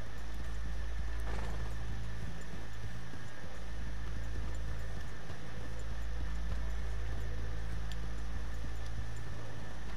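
Horses' hooves thud steadily on a dirt track.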